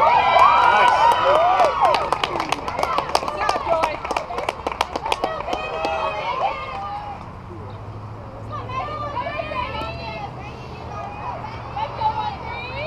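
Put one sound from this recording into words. Young women cheer and chant loudly nearby.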